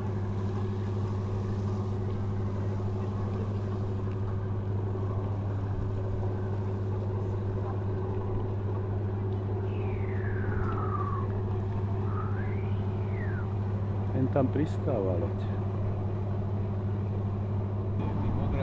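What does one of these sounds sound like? A moored ship's engine hums steadily and low.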